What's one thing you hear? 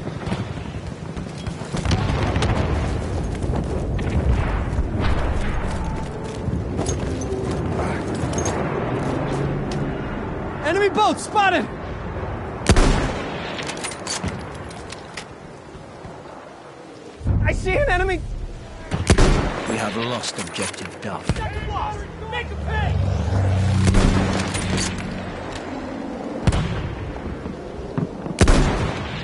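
Explosions rumble in the distance.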